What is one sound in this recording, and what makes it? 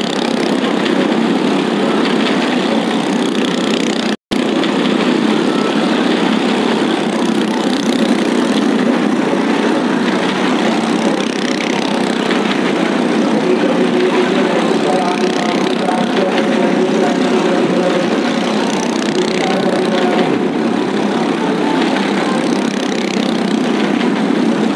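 Motorcycle engines roar loudly.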